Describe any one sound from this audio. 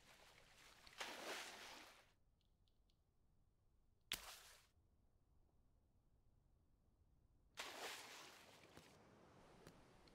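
A swimmer splashes through water in short bursts.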